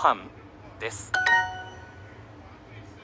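A bright rising chime rings to mark a correct answer.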